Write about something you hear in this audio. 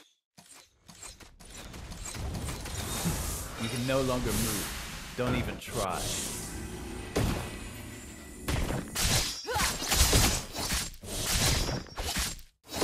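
Game spell effects whoosh and blast in quick bursts.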